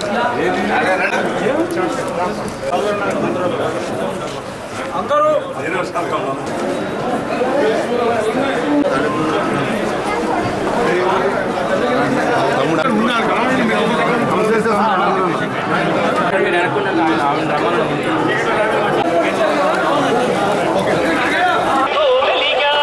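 A crowd of men and women chatter loudly all around.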